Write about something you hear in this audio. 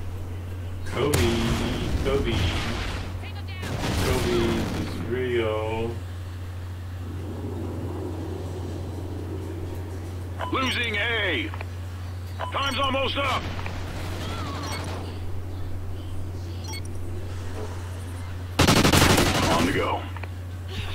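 Gunfire from a video game crackles in short bursts.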